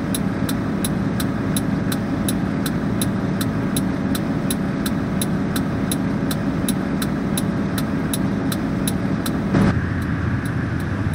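A turn indicator ticks at an even pace.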